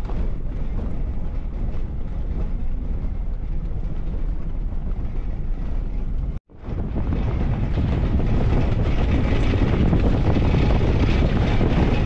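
A runner's footsteps patter on a dirt road.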